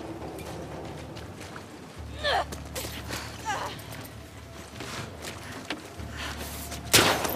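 Footsteps splash quickly on wet pavement.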